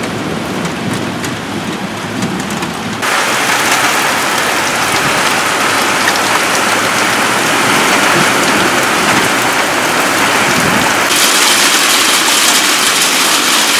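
Raindrops patter and splash on a glass tabletop.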